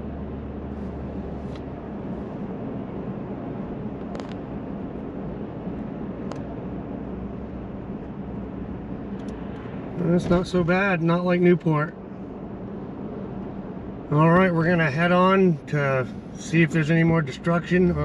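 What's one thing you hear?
A car's engine and tyres hum steadily on a road.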